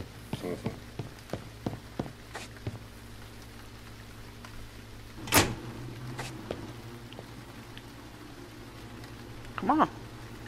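A man speaks briefly into a nearby microphone.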